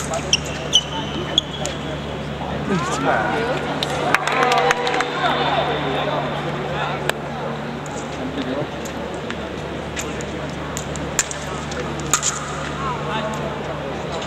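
Feet shuffle and stamp on the fencing strip.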